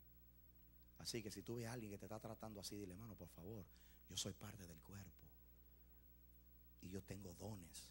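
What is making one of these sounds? A man speaks with animation through a microphone over loudspeakers.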